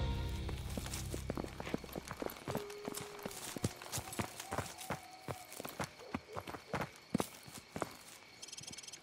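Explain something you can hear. Footsteps crunch on gravel at a walking pace.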